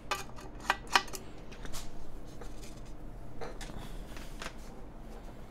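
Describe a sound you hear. Plastic parts clack and knock as a keyboard case is handled.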